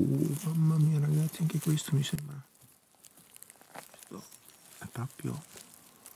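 Dry leaves rustle as a hand pulls a mushroom from the ground.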